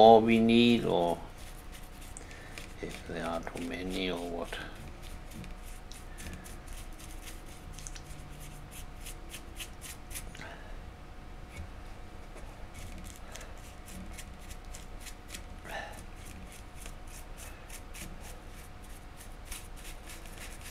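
A brush dabs and taps lightly on a hard surface.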